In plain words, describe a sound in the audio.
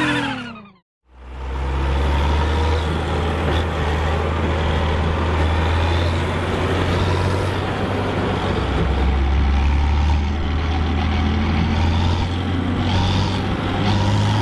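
A tractor engine idles with a steady, low rumble.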